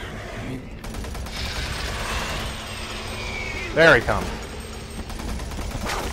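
A monster snarls and growls.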